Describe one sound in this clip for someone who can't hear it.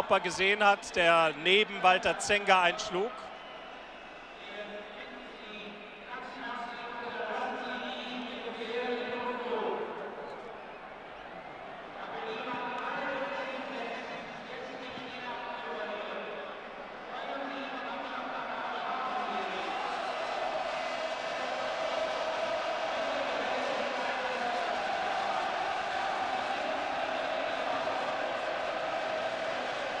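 A large crowd roars and chants in an open stadium.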